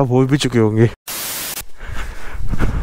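Static hisses loudly for a moment.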